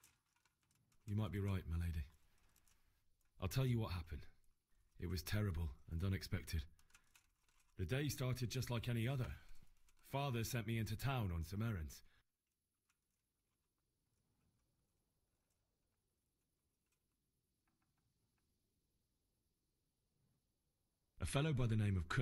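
A young man speaks calmly and close by, telling a story.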